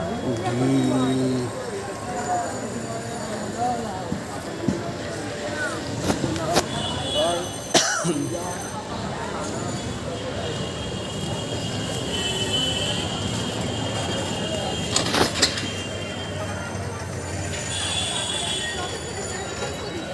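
A crowd of people chatters and calls out in a busy street outdoors.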